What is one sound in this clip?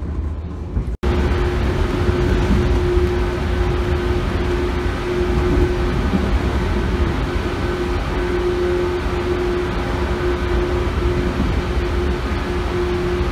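A train roars louder inside a tunnel, with a steady whine.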